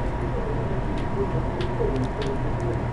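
A safe's combination dial clicks softly as it turns.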